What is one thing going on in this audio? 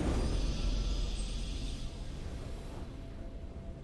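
A triumphant game fanfare rings out loudly and fades.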